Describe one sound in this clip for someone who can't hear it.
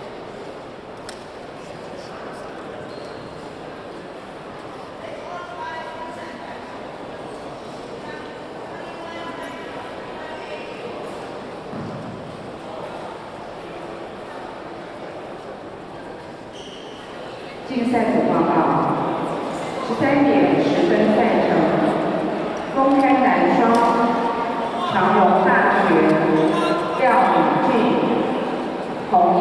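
Many people chatter faintly in a large echoing hall.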